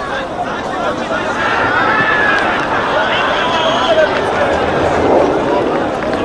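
A crowd cheers more loudly toward the end.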